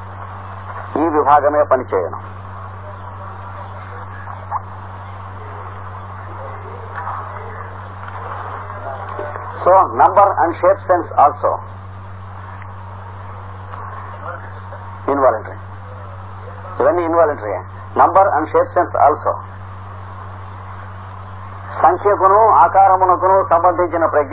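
A middle-aged man speaks in short bursts, close to a microphone.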